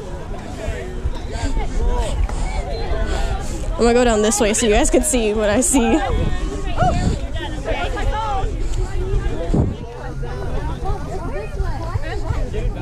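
Children and young girls talk and shout nearby outdoors.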